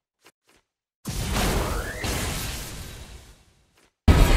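A sharp crackling impact bursts.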